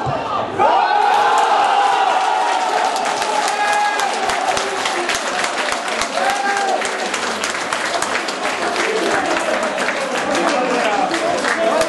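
Spectators clap their hands close by.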